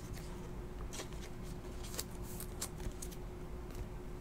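Plastic card sleeves crinkle and rustle in hands.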